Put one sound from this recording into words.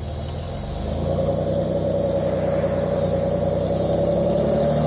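A truck engine revs up.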